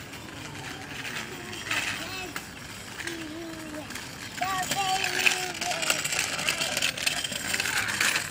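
Small bicycle wheels roll and rattle on pavement, growing louder as the bike comes close.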